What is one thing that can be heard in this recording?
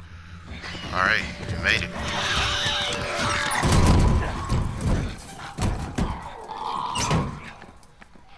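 Loud thuds and crashes ring out in a scuffle.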